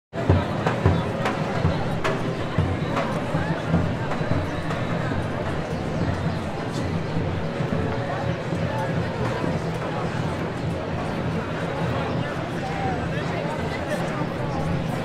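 A large crowd chatters busily outdoors.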